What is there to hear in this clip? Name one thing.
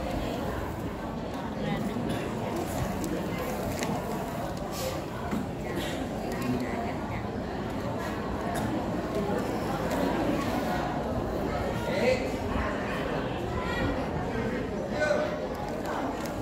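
Music plays through loudspeakers in a large echoing hall.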